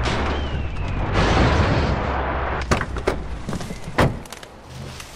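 A car crashes with a loud rumble.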